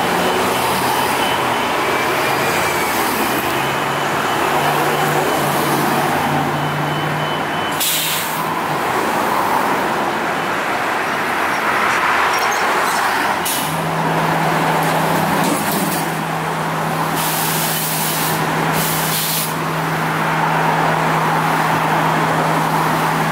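Traffic passes on the street.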